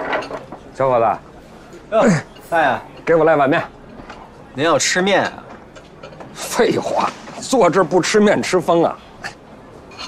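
An elderly man answers loudly.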